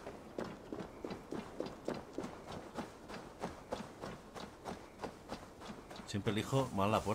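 Footsteps crunch quickly through dry grass.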